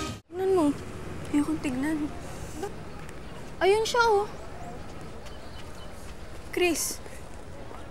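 A teenage girl speaks with animation nearby.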